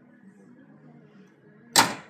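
A car hood slams shut with a loud bang.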